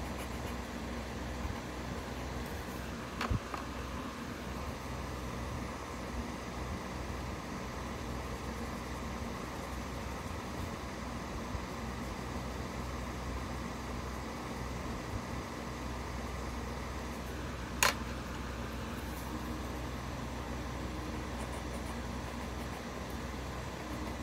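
A pencil softly scratches and rubs on paper.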